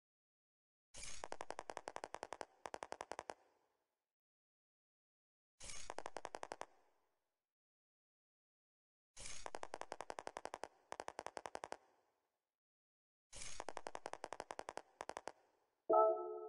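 Rapid electronic blips tick in short bursts.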